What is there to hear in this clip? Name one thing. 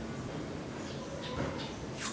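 Electrical tape peels off a roll with a sticky rasp.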